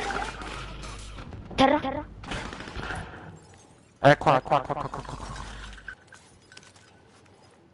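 Gunfire rattles from a video game.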